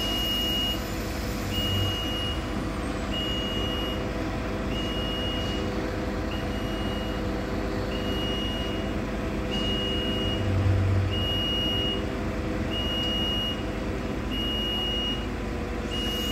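A warning beeper sounds in a steady repeating pattern.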